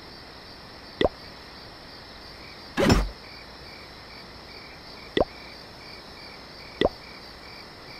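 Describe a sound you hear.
Short game interface clicks sound as menus open and close.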